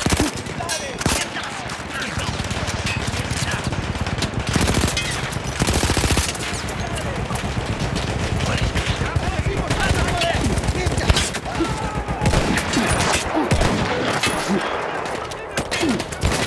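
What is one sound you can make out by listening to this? A rifle bolt clacks as it is worked and reloaded.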